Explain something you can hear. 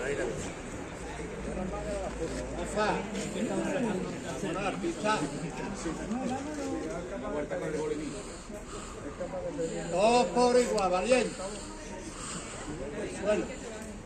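A crowd of men and women talks and murmurs nearby, outdoors.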